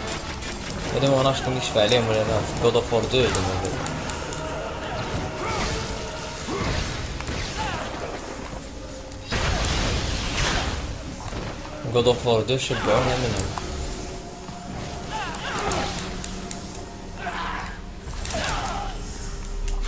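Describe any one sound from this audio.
Blades swish and slash through the air.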